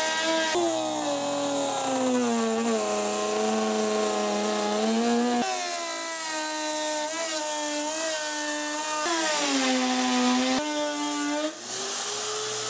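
A router whines loudly, cutting into a board.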